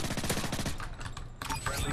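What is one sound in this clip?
Rapid gunshots fire in a video game.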